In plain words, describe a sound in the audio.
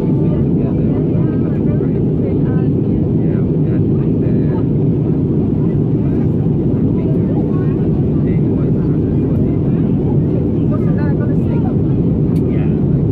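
A jet airliner's engines roar steadily inside the cabin.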